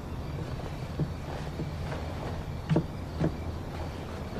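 Footsteps thud on wooden porch boards.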